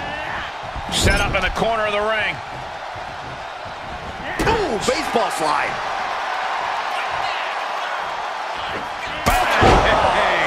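Bodies slam heavily onto a ring mat.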